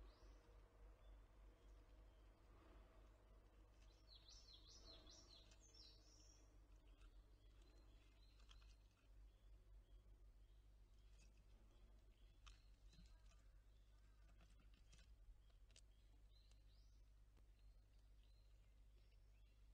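A squirrel nibbles and crunches seeds close by.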